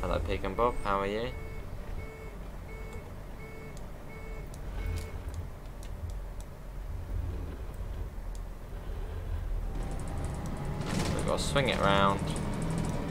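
A bus engine hums low and steadily.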